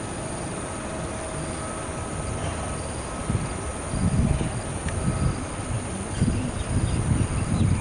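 A jet airliner's engines roar as the plane rolls down a runway.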